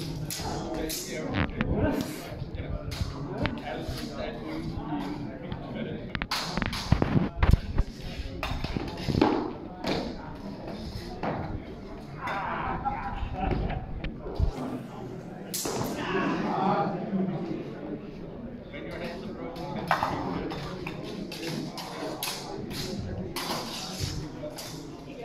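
Swords clash and clatter in a large echoing hall.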